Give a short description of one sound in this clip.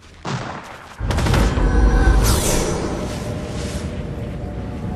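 Wind rushes loudly past a falling figure.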